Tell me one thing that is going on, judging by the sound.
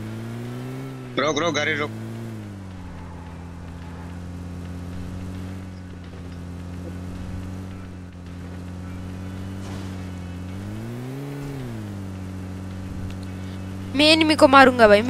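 A vehicle engine hums steadily and rises briefly in pitch as it climbs.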